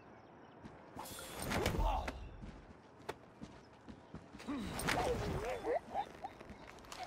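A man grunts and groans as he is grabbed and choked.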